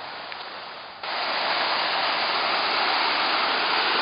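Water rushes and roars loudly over rapids close by.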